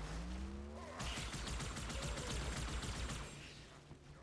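An energy rifle fires a rapid burst of crackling shots.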